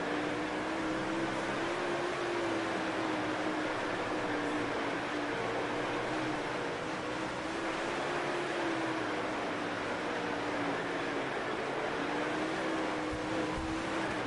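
A race car engine roars steadily, its pitch rising and dipping as it accelerates and eases off.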